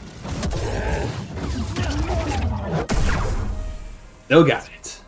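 A lightsaber hums and clashes in a fight.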